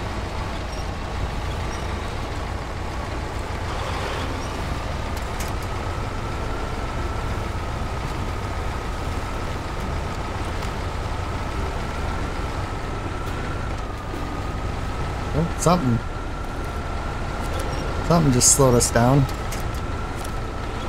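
A heavy truck engine rumbles steadily as it crawls over rough ground.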